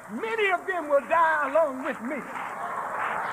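A man shouts forcefully into a microphone.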